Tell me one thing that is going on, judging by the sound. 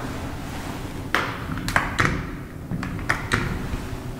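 A metal door latch clicks as a swing door is pulled open.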